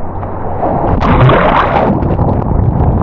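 The sound turns muffled as the listener dips underwater.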